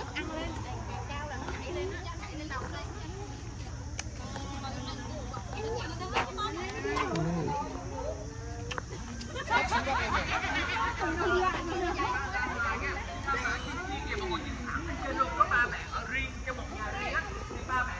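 Several adults talk and chatter nearby outdoors.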